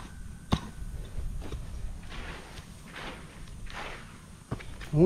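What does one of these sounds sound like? A shovel scrapes and digs into dry soil.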